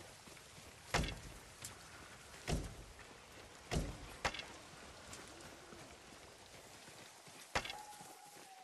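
Grass rustles as someone crawls slowly through it.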